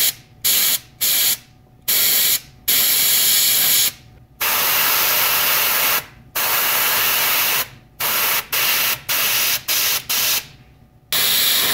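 An airbrush hisses in short, steady bursts of spray.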